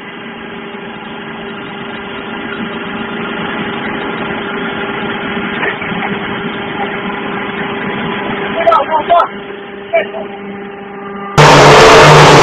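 An electric mortar pump motor hums.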